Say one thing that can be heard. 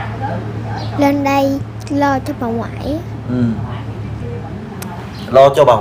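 A young girl speaks softly and hesitantly close by.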